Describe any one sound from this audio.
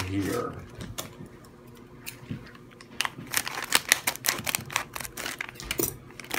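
A foil packet crinkles and rustles in a hand close by.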